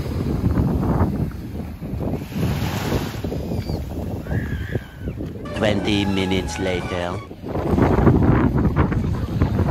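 A swimmer splashes through the water.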